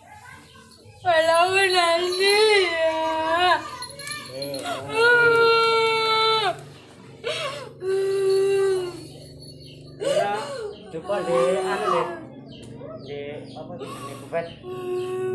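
A young man wails and cries out loudly.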